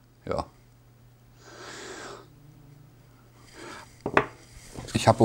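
A man handles something with soft clicks.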